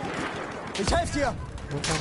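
An explosion booms in the distance.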